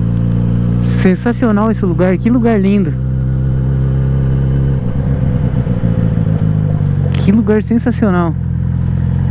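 A motorcycle engine revs sharply up and down in quick bursts.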